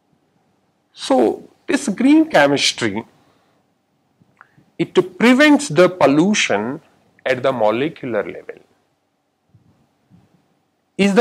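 A man lectures calmly into a close microphone, in bursts with pauses.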